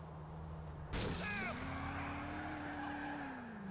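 Car tyres screech briefly on the road during a sharp turn.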